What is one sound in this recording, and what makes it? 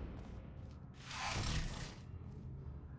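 A sliding door closes with a whoosh.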